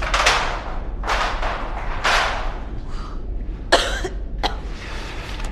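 Footsteps hurry across a hard floor.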